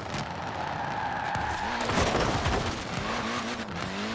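Tyres screech as a car skids around a bend.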